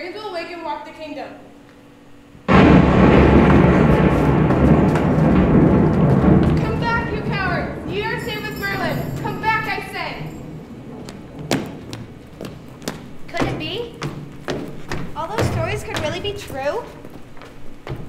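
Young women speak and exclaim with animation in an echoing hall.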